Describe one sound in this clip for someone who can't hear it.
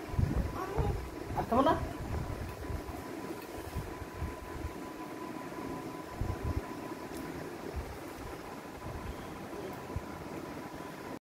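A metal spoon clinks lightly against a steel cup.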